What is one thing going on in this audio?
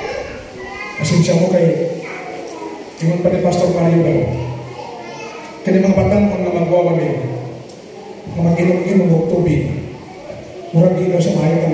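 A man preaches with animation through a loudspeaker in an echoing hall.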